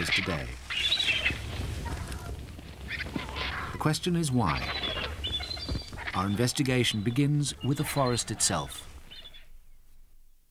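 Vultures hiss, squeal and grunt as they squabble close by.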